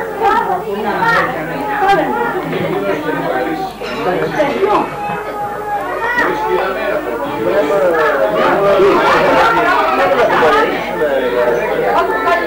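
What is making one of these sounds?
Several men talk and laugh together close by.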